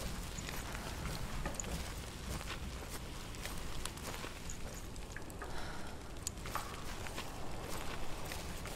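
Footsteps crunch on gravel at a steady pace.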